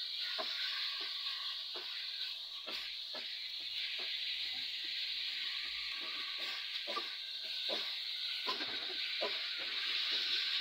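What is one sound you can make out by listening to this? A plastic spatula scrapes and stirs meat in a pot.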